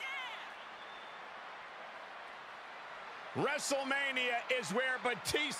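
A crowd cheers and roars in a large arena.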